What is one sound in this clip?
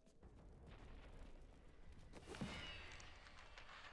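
A magical portal hums and whooshes.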